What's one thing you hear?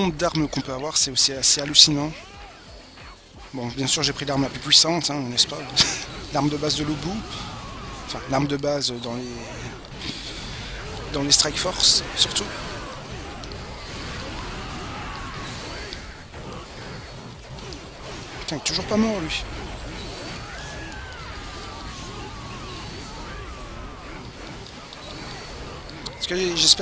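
Magical blasts burst and crackle.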